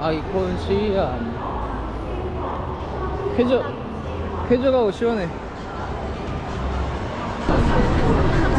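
Voices murmur in a large echoing hall.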